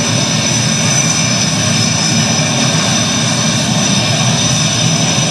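A jet engine roars loudly and steadily with a high whine.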